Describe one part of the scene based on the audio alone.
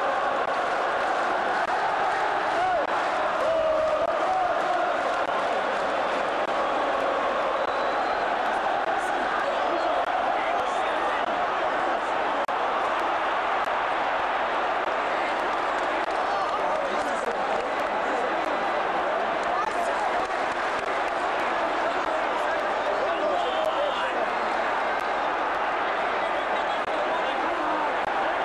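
A huge stadium crowd roars and chants steadily.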